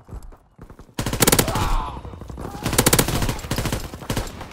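Rapid gunfire bursts loudly and close.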